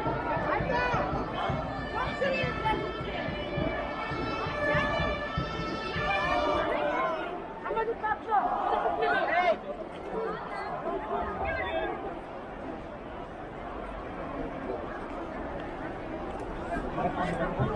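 A crowd of people murmurs and talks nearby in the street.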